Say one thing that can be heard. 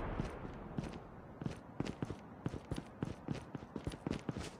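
Footsteps crunch quickly on gravel and grass.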